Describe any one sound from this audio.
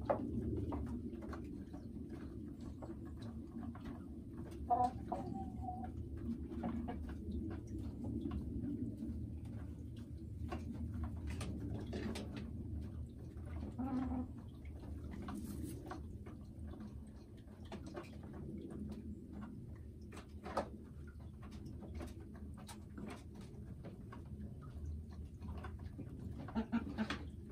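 A hen clucks softly and murmurs close by.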